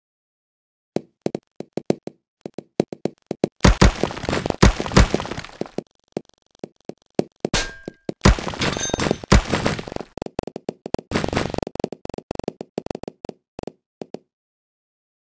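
Many balls clatter and pop in a rapid busy burst of game sounds.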